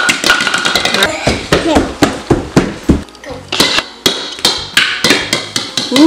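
Plastic bowling pins clatter as they are knocked over.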